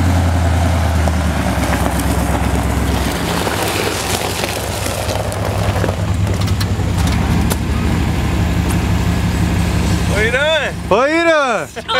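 A pickup truck engine idles with a low, steady rumble.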